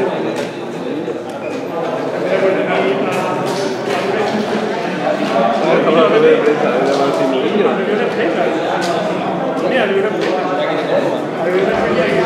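A man taps keys on a laptop keyboard.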